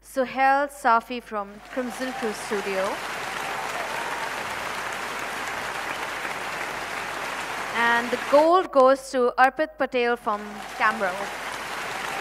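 A young woman announces into a microphone over loudspeakers.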